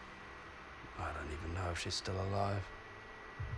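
A man speaks quietly and grimly.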